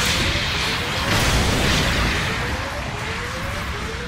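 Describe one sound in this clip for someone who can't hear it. A beam sword hums and slashes.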